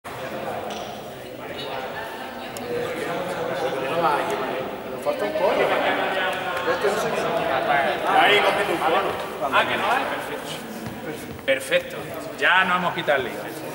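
Young people chatter and laugh nearby.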